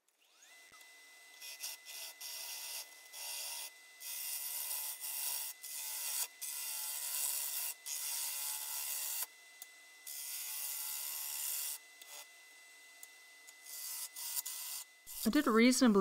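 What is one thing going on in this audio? A gouge scrapes and hisses against spinning wood in short bursts.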